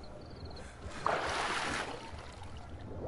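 Water splashes as a swimmer dives under.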